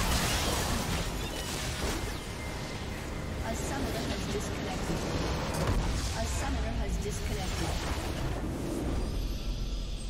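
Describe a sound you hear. Game spell effects crackle and clash in a busy battle.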